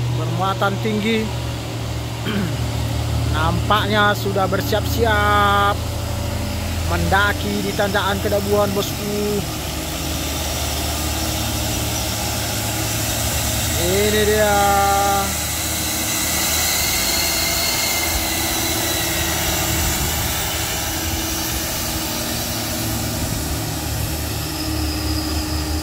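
A heavy truck engine rumbles as it climbs past close by.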